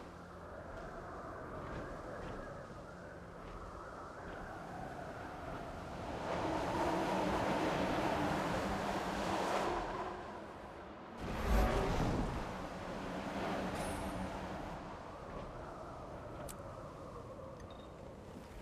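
Large wings beat and whoosh through the air.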